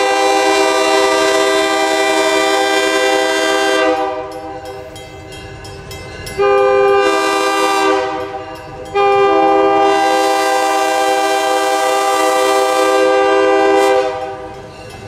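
A train horn blows loud, long blasts.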